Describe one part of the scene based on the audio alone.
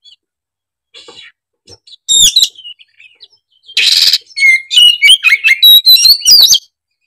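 A songbird sings loud, shrill whistling phrases with harsh chattering bursts.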